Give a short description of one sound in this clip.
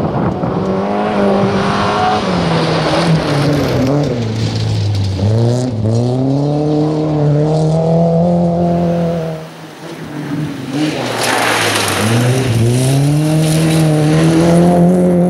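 Gravel sprays and patters as a car's tyres skid through a bend.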